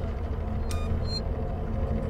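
A button clicks as it is pressed.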